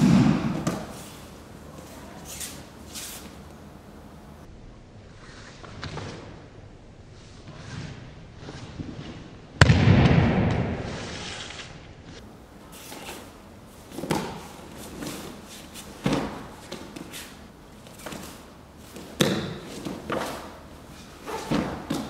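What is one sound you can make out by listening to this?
Bodies thump onto a padded mat.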